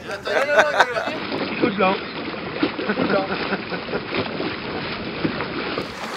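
Paddles splash in the water.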